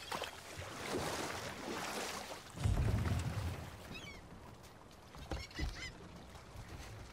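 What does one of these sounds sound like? Water laps and splashes against a wooden boat.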